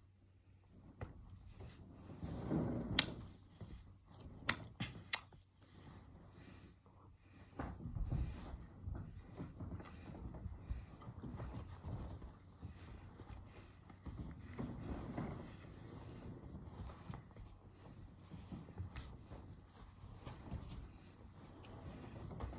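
A lion cub scuffles and paws at soft bedding close by.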